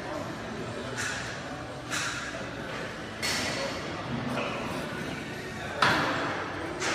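Dumbbells clank against a rack.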